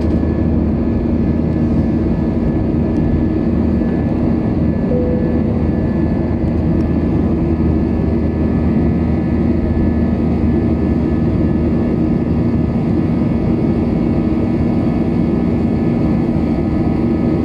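Jet engines roar steadily and loudly from up close.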